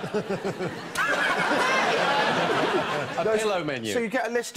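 An audience laughs in a studio.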